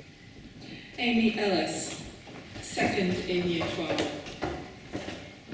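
An older woman speaks calmly through a microphone in a large echoing hall.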